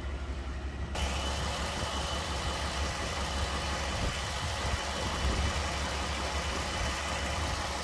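A car engine idles with a steady hum.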